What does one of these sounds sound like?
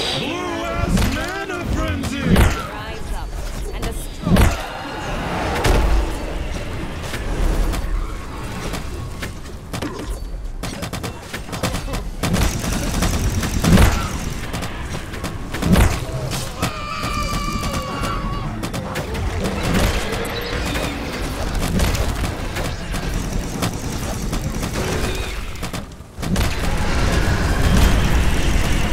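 Magical blasts crackle and boom in a fierce fight.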